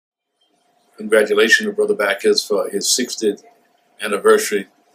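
A middle-aged man speaks calmly and warmly, close to the microphone.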